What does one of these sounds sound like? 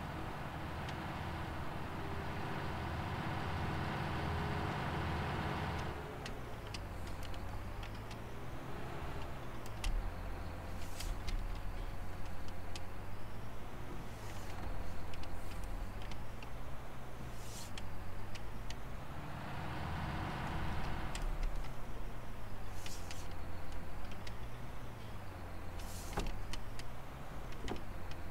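A tractor engine rumbles steadily, rising and falling in pitch as it works.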